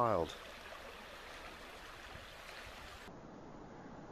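A river flows and ripples steadily.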